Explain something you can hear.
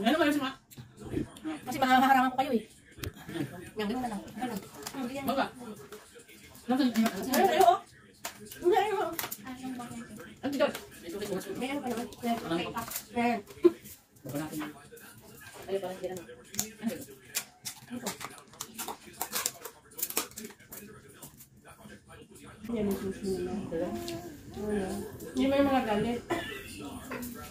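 Women talk casually close by.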